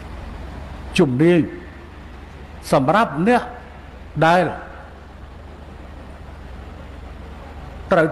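An older man speaks with animation through a microphone and loudspeakers, in short bursts with pauses.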